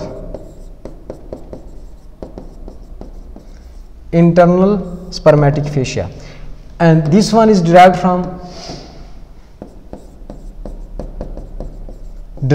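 A pen taps and scratches on a board.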